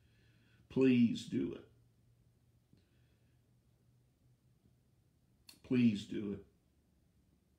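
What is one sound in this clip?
An elderly man speaks calmly in short phrases close to a microphone, as on an online call.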